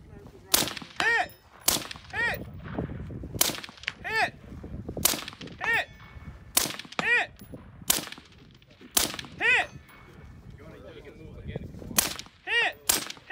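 Steel targets ring with a bright ping after the shots.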